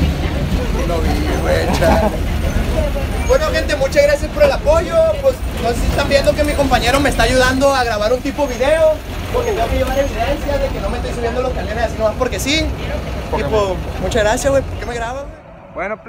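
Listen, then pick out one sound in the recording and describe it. A crowd of young people chatter and shout loudly.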